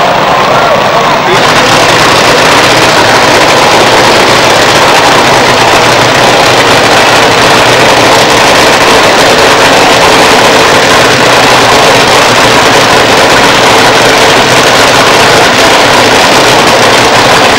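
A nitro-fuelled dragster engine roars at the start line, heavily distorted.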